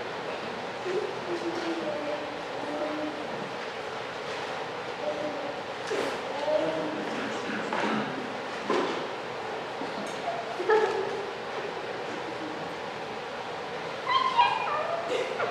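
An elderly man speaks calmly in a large echoing room.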